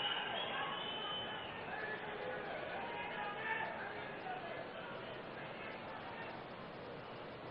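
A man speaks steadily into a microphone, heard over loudspeakers.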